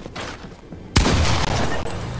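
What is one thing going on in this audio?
A shotgun fires a single loud blast.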